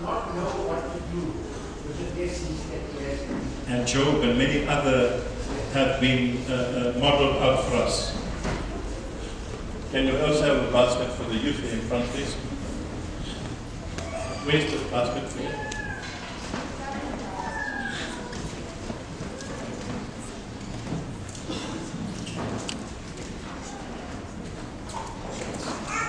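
A congregation murmurs and chatters in a large echoing hall.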